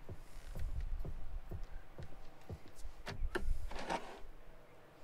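A wooden box lid creaks open.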